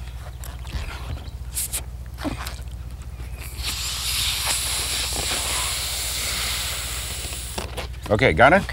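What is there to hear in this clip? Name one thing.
A man blows hard into a balloon in short breaths.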